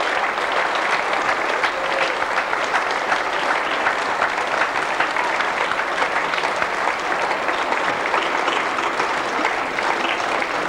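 A group of men and women sing loudly together.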